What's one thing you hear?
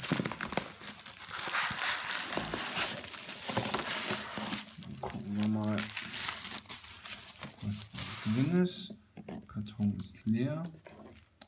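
A cardboard box scrapes and bumps as it is moved.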